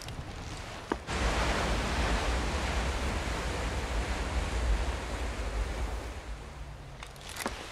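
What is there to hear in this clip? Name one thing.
Waves wash against ships' hulls at sea.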